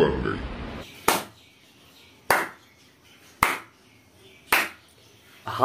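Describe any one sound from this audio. A young man snaps his fingers several times.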